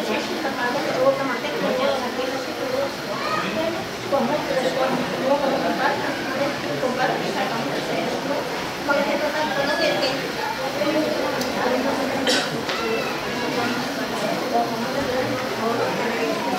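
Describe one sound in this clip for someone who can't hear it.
Several men and women murmur and talk quietly nearby.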